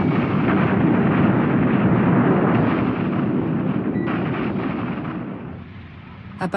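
Bombs explode in a deep, continuous rumble.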